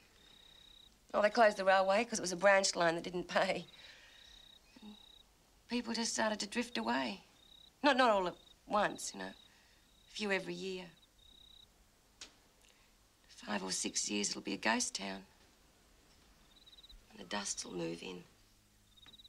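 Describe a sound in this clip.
A woman speaks quietly and tensely, close by.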